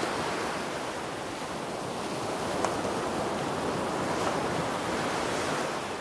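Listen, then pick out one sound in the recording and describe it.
Waves break and wash onto a shore.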